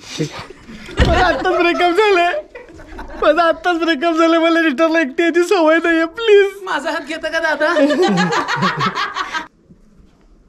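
A man talks loudly and with animation close by.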